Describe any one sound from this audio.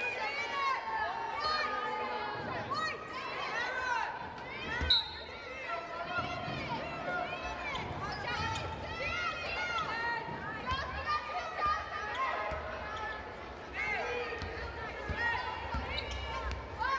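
Sneakers squeak sharply and often on a hardwood court.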